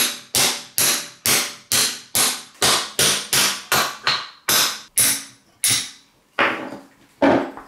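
A hammer strikes metal in quick, ringing blows.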